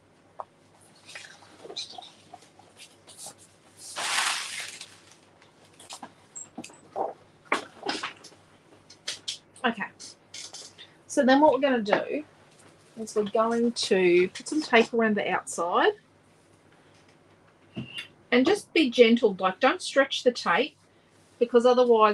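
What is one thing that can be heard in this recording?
Paper rustles and slides as sheets are handled.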